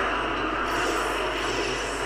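A burst of flames roars.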